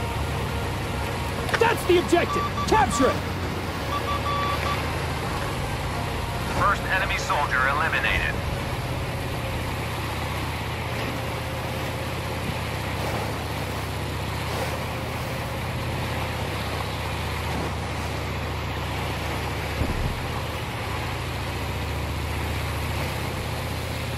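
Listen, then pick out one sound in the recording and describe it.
An engine rumbles steadily as a vehicle moves through water.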